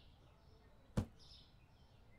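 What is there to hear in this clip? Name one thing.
A heavy box thuds down onto a wooden floor.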